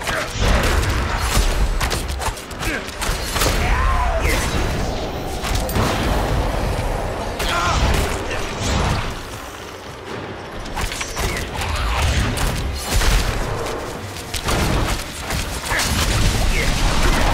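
Magic blasts whoosh and crackle in quick bursts.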